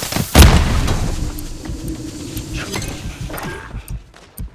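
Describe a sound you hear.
Wind rushes loudly past a falling player.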